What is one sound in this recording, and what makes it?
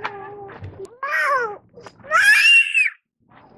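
A toddler girl squeals loudly and excitedly close by.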